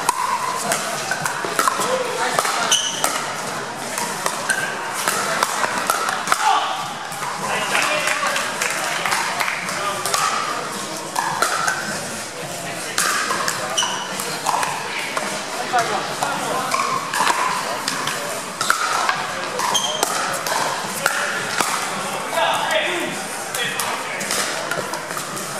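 A crowd of people chatters in a large echoing hall.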